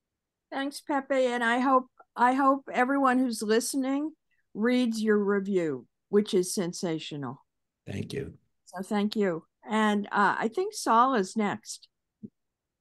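An elderly woman speaks with animation over an online call.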